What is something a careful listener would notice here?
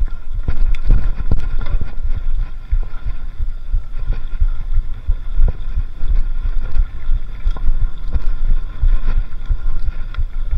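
Bicycle tyres roll and bump over a rough dirt trail.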